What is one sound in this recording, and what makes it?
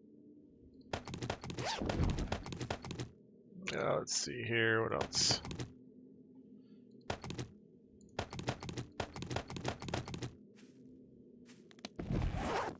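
Game menu sounds click and rustle as items are moved around an inventory.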